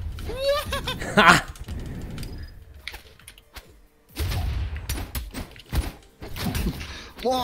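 Video game fighting effects clash and whoosh.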